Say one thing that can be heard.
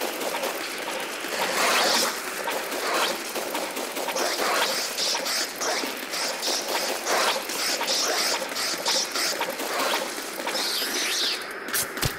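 Small creatures screech and yelp.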